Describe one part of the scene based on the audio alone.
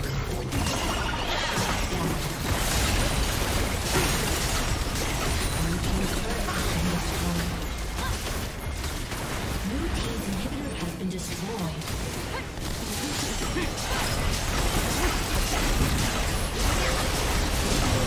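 Game spell effects and attack sounds clash and crackle.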